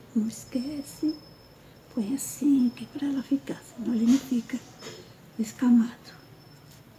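An elderly woman speaks close by with animation.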